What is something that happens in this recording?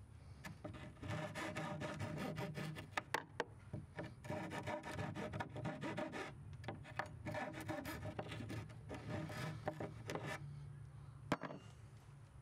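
A hex key turns a screw with rapid metallic clicking and scraping.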